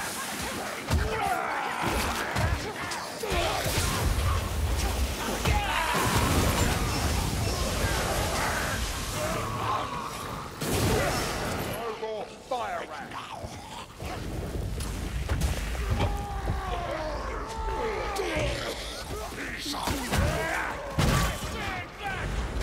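Creatures screech and snarl nearby.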